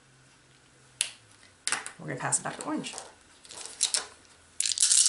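Dice click together as they are picked up.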